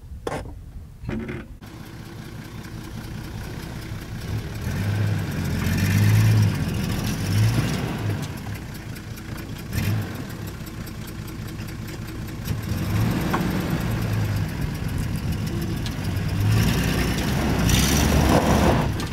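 Tyres crunch slowly over dirt and gravel.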